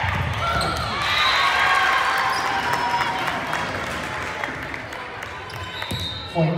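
Spectators cheer and clap.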